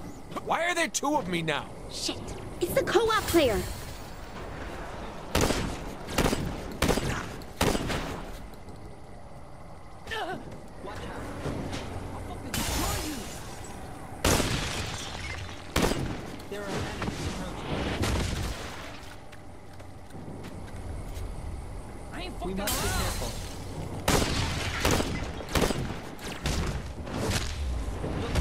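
Gunshots and blasts ring out in sharp bursts.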